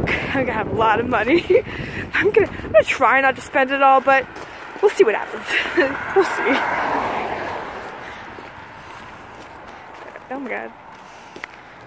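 A young woman talks with animation close to the microphone outdoors.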